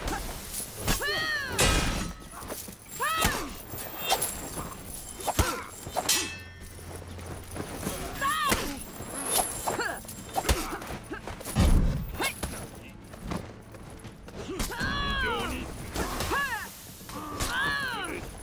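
Swords clash and ring with metallic clangs.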